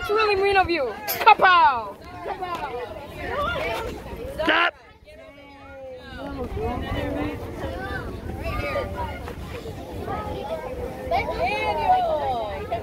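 Teenage boys talk and shout excitedly close by.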